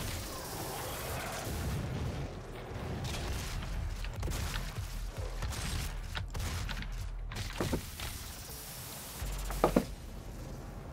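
Rapid gunfire crackles from a video game.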